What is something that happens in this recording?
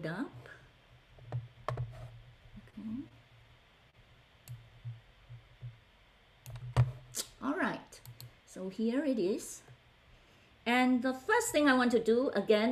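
A woman speaks calmly through an online call microphone.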